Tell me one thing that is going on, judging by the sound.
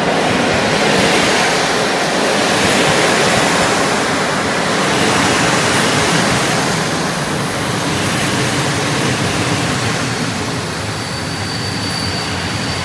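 A passenger train rolls past close by, its wheels rumbling and clattering on the rails.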